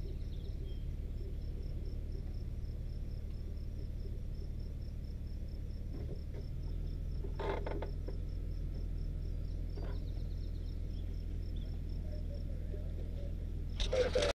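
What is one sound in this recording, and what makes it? A vehicle engine idles with a low, steady rumble close by.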